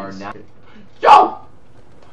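A young man shouts out loudly close to a microphone.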